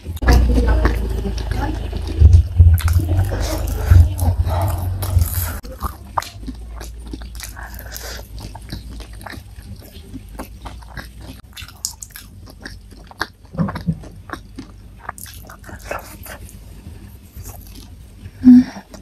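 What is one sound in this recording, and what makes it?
A woman chews food close to a microphone, with wet smacking sounds.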